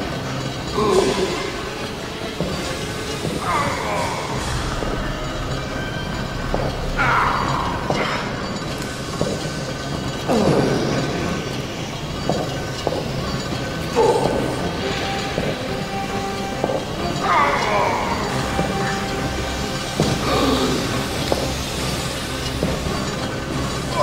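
Footsteps thud on a metal floor.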